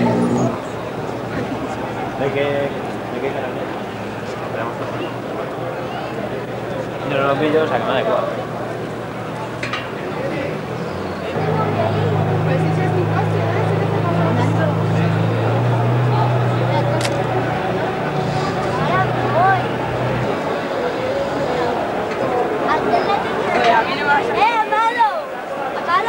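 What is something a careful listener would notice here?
A crowd chatters outdoors nearby.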